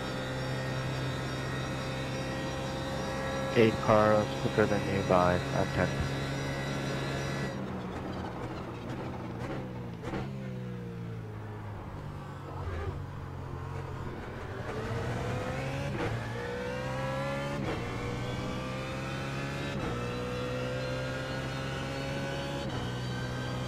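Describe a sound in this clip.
A racing car engine roars at high revs, dropping in pitch while braking and rising again as it speeds up.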